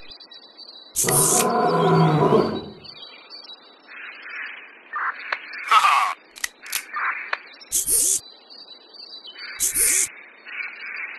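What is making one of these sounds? Rifle shots crack loudly, one after another.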